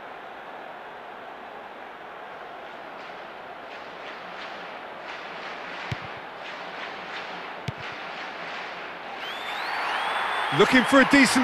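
A stadium crowd roars steadily and swells louder near the end.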